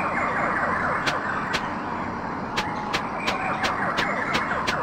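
A game character's footsteps tap.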